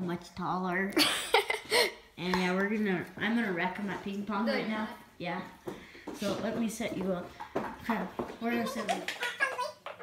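A boy talks and laughs close by.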